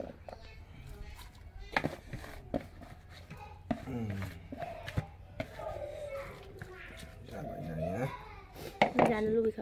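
A hand presses food down inside a clay pot with squelching rustles.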